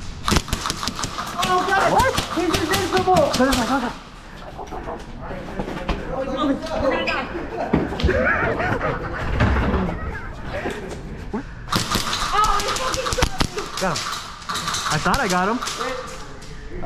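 An airsoft pistol fires sharp shots.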